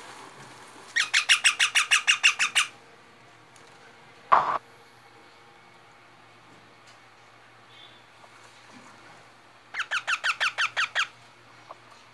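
A parrot squawks in rapid, repeated harsh calls, up close.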